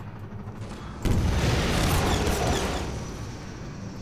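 A rocket launches with a roaring whoosh.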